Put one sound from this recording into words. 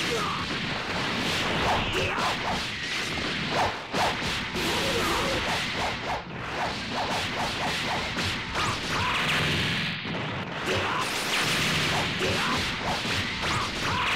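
Punches and kicks land with rapid, sharp thuds.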